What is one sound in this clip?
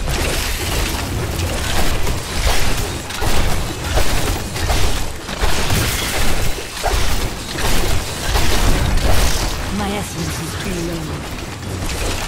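Weapon strikes and spell blasts crash loudly and rapidly.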